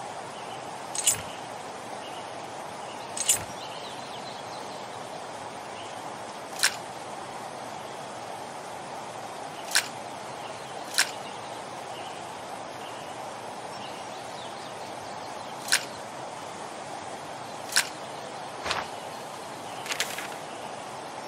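Small metal lock pins click sharply as they slide into place.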